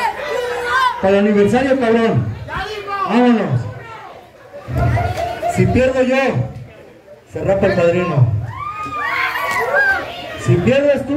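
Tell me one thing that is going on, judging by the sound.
A man speaks forcefully through a microphone and loudspeaker in a large echoing space.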